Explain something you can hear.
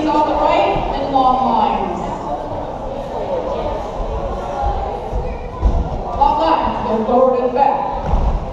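Many people chatter and talk at once in a large echoing hall.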